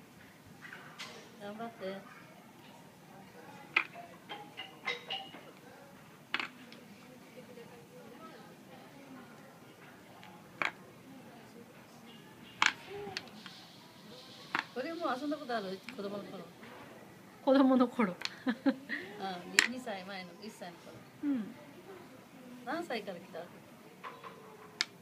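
Wooden blocks clack and knock against each other.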